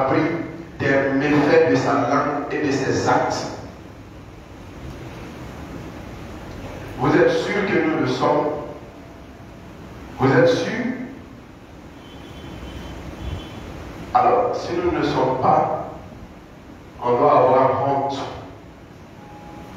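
An elderly man preaches with emphasis through a microphone and loudspeakers, pausing between phrases in a large echoing hall.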